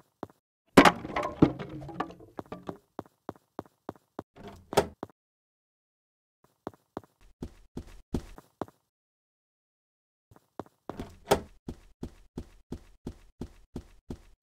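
Quick footsteps thud across a wooden floor.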